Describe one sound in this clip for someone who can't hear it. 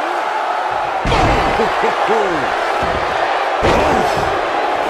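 A heavy body slams down onto a wrestling ring mat with a loud thud.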